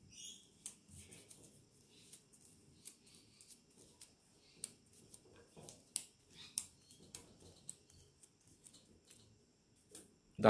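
A gloved hand rubs and brushes across a flat surface.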